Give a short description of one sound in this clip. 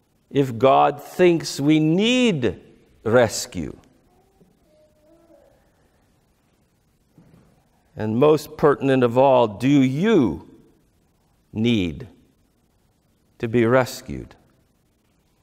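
A middle-aged man speaks with animation through a clip-on microphone, in pauses.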